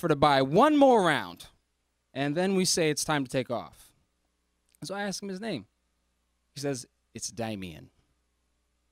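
A young man speaks expressively into a microphone, with pauses.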